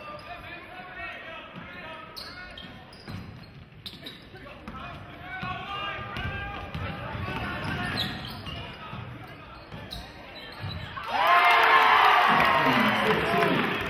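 A crowd talks and cheers in a large echoing gym, growing loud near the end.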